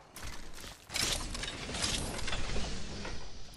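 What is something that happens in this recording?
A metal supply bin hisses and slides open.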